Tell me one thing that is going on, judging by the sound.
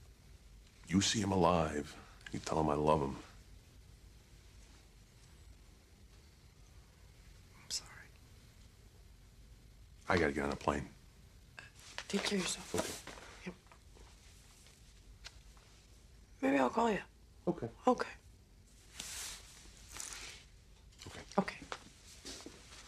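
A man speaks quietly and calmly close by.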